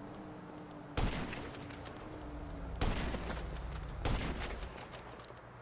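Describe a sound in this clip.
A sniper rifle fires several shots.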